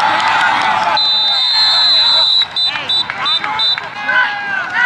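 A referee's whistle blows in several short blasts.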